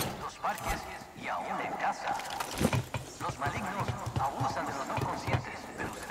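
Footsteps clang on a metal ladder.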